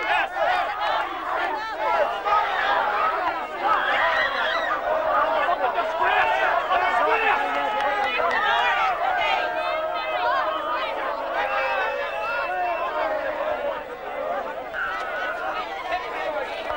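A crowd of men and women shouts and cries out close by.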